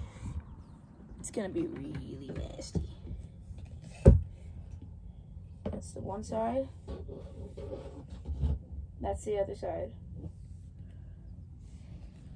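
Fabric rustles and scrapes against the microphone.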